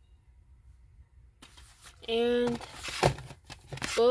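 A plastic disc case clacks and scrapes as it is pulled from a shelf.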